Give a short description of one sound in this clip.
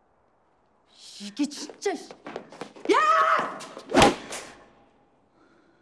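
A young woman shouts loudly and sharply.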